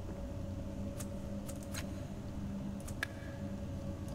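Soft interface clicks sound as menu items are picked.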